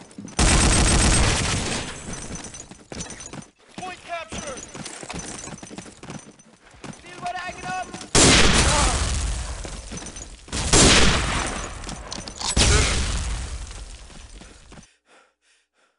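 A rifle fires loud shots that boom and echo away.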